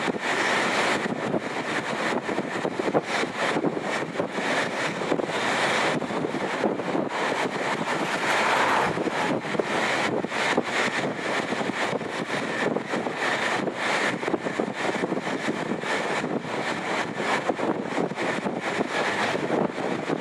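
Wind buffets loudly across the microphone outdoors.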